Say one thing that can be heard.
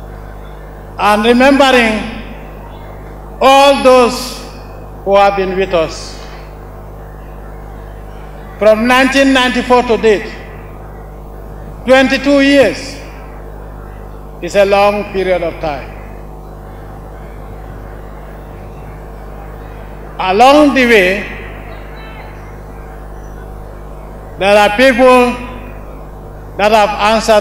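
A man speaks slowly and forcefully into microphones, in short bursts with pauses, heard through loudspeakers outdoors.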